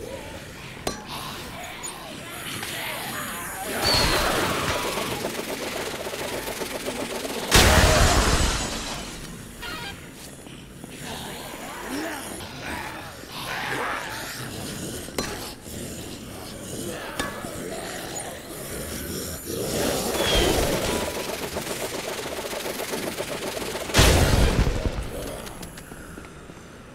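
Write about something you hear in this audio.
Punches thud against bodies in quick succession.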